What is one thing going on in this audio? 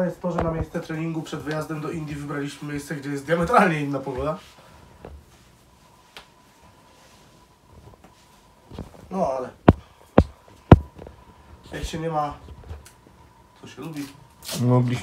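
Fabric rustles as a sock is pulled onto a foot.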